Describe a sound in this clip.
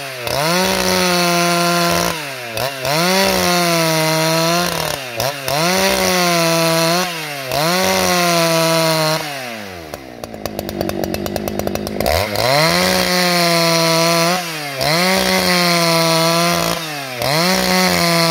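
A chainsaw roars as it cuts through wood, its engine revving up and down.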